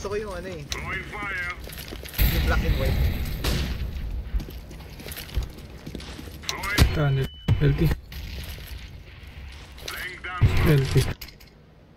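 A rifle fires short bursts of shots.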